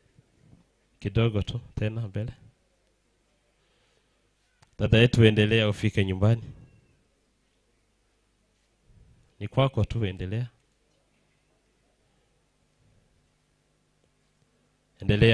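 A man speaks calmly into a microphone, heard through a loudspeaker in short phrases.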